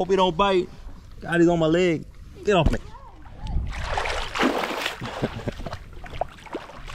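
Water splashes as a hand dips into it.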